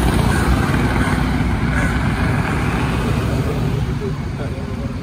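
Traffic rumbles past on a road.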